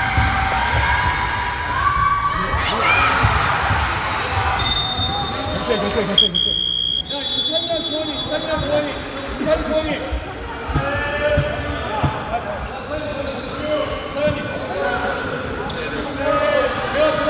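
Sneakers squeak on a gym floor, in a large echoing hall.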